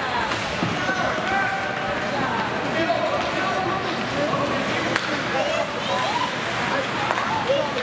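Young players shout and call to each other in a large echoing rink.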